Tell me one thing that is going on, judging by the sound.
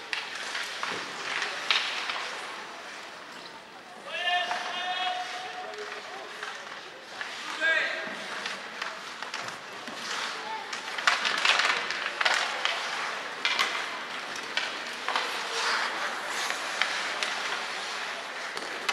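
Ice skates scrape and swish across the ice in a large echoing rink.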